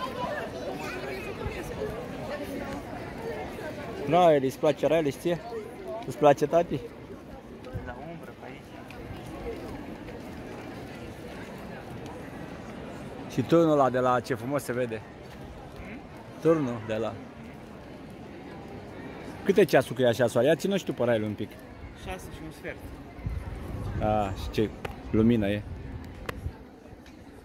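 A crowd chatters outdoors in the distance.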